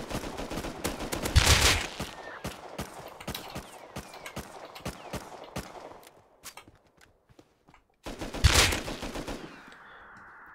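A rifle fires bursts of sharp, rapid shots.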